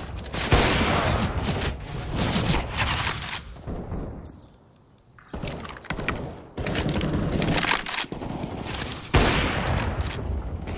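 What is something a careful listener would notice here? Gunshots crack and echo in rapid bursts.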